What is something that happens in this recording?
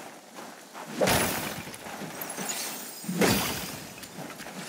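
Sudden whooshing blows strike an enemy.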